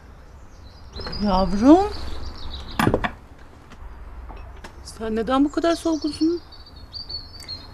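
A middle-aged woman speaks sharply and with feeling, close by.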